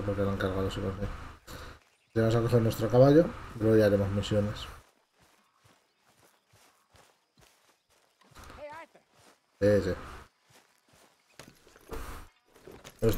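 Footsteps tread softly through grass.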